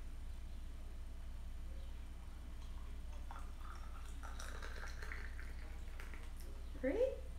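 Water pours from a kettle into a glass pot.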